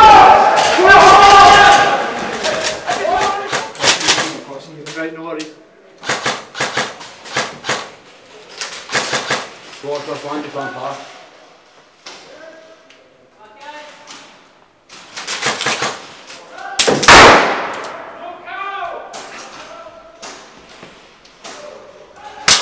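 Young men shout to each other, close by and with echo.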